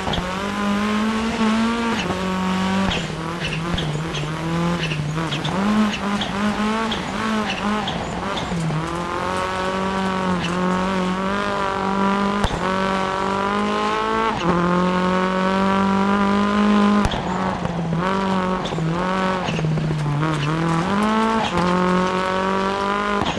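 A rally car engine revs hard and shifts gears up and down.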